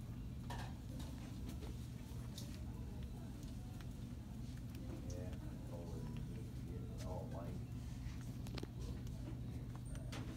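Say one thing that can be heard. A parrot chews and clicks its beak on a plastic toy.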